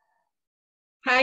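A young woman begins to speak close to the microphone, heard as if over an online call.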